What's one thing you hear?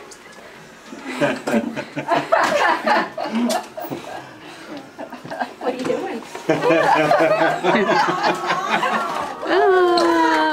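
Several people nearby cry out and cheer in surprise.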